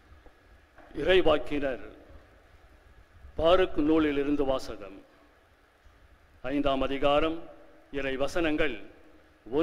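A middle-aged man reads out slowly through a microphone in an echoing hall.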